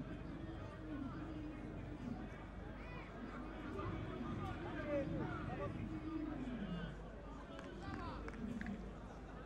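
A stadium crowd murmurs and chants in the distance.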